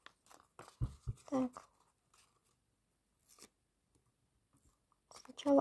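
Stiff paper rustles as it is handled.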